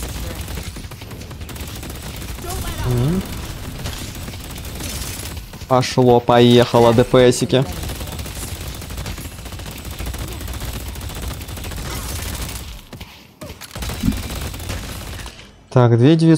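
Gunshots and sharp bursts of energy crackle in quick succession.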